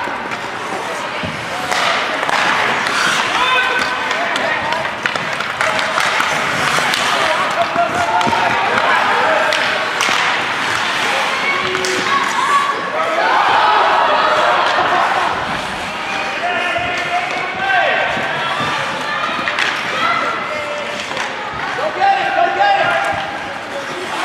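Young players on the bench shout and cheer nearby in an echoing rink.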